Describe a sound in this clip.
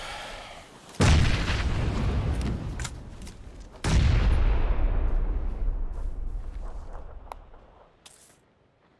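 A smoke grenade bursts with a loud rushing hiss that slowly fades.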